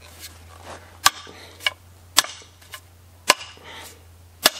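A hammer head knocks against a wooden handle.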